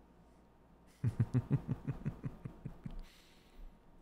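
A man laughs softly into a microphone.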